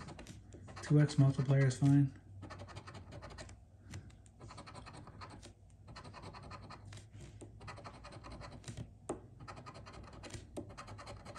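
A coin scratches rapidly across a card surface.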